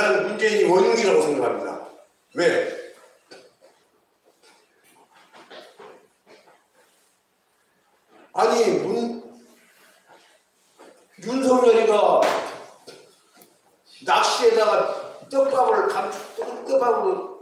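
An older man speaks loudly in a hall with some echo, in bursts with pauses.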